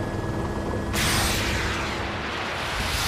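A rocket fires with a loud whoosh.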